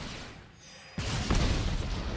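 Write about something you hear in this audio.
A fiery blast whooshes and roars.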